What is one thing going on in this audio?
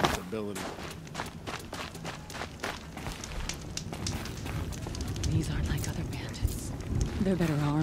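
A campfire crackles nearby.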